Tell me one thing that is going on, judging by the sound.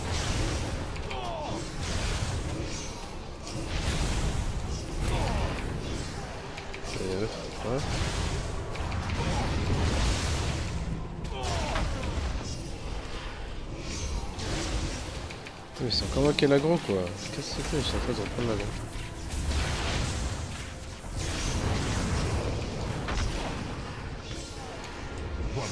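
Spell blasts and weapon hits thud and clang over and over.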